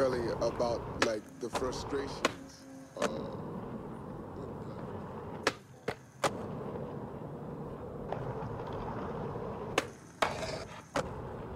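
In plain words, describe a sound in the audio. A skateboard clacks sharply as it pops and lands.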